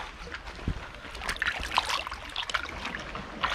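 Water splashes as a hand stirs it.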